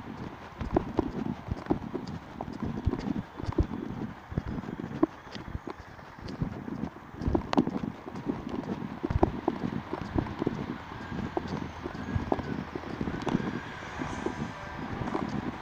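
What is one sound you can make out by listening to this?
Wind buffets and rumbles against the microphone while moving along a road.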